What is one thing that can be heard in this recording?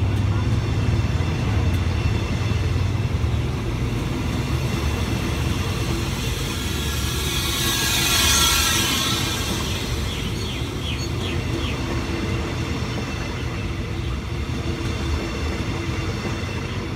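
Train wheels clatter rhythmically over rail joints.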